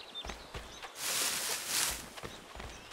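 Leafy bushes rustle as someone pushes through them.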